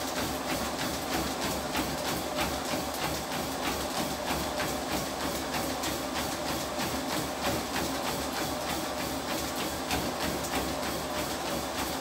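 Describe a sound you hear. A treadmill motor and belt hum steadily.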